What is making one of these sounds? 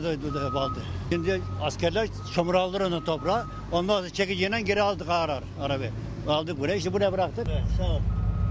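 An elderly man speaks with agitation into a microphone close by.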